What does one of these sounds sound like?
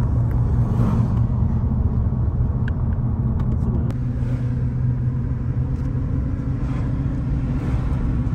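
Tyres roll along the road with a steady rumble.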